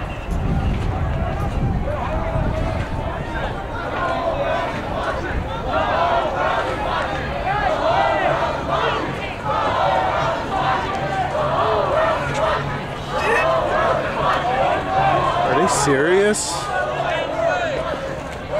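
A large crowd of people talks and chatters outdoors.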